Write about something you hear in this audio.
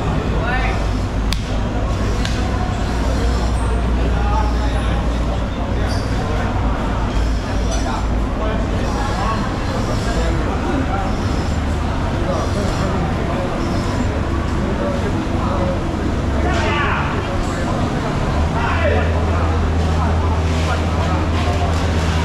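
A knife slices through fish flesh.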